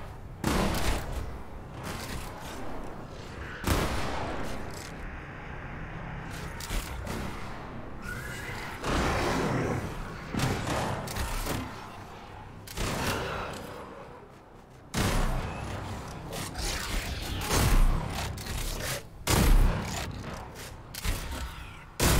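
Crossbow bolts thump and zap as they are fired, again and again.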